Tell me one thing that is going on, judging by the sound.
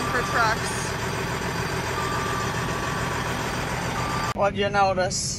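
A large tractor engine runs loudly up close.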